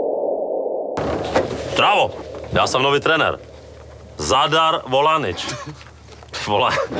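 A middle-aged man speaks close by.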